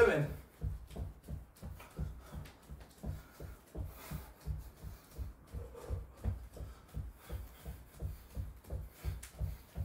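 Feet thump softly and rhythmically on a wooden floor.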